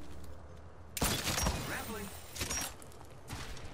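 A grappling hook fires and snaps taut.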